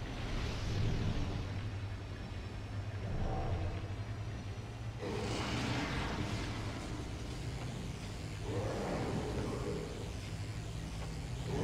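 A beam weapon fires with a loud buzzing blast.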